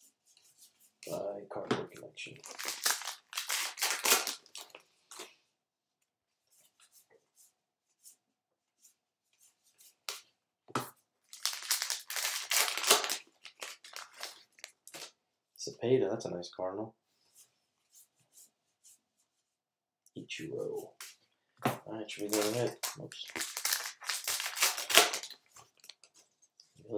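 Trading cards shuffle and flick softly.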